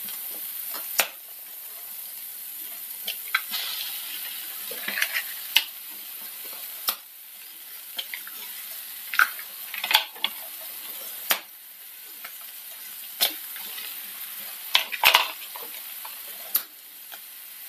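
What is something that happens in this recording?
Eggs crack sharply against the rim of a pan.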